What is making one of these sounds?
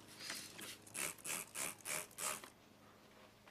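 A spray bottle squirts in quick bursts.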